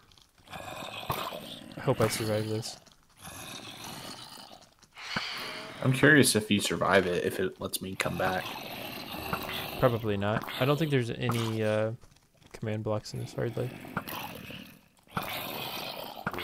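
Zombies groan nearby.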